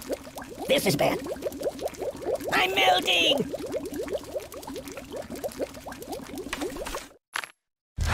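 Liquid bubbles and gurgles in a tank.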